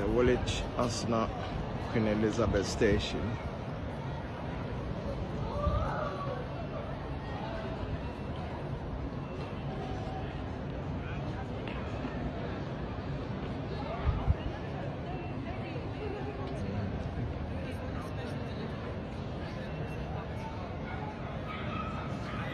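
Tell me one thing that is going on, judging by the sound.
Footsteps tap on paving stones close by.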